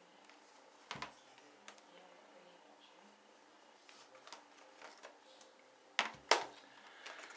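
Hard plastic devices click and tap against each other as they are handled.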